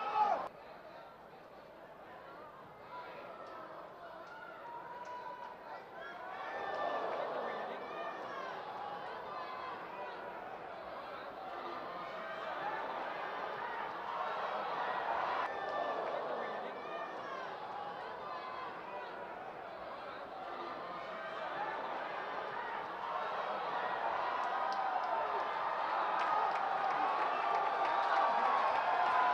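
A large crowd cheers and shouts, growing louder toward the end.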